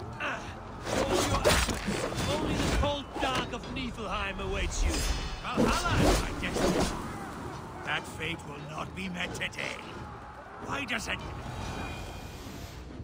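A man speaks in a deep, strained voice close by.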